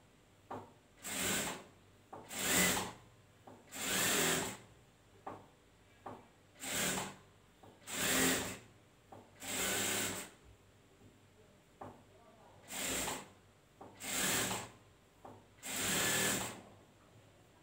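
A sewing machine whirs in short, repeated bursts.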